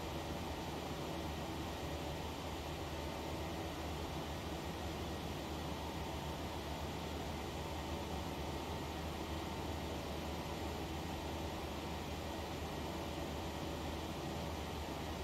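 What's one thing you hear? Jet engines drone steadily.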